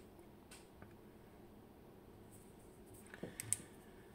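A lock clicks open.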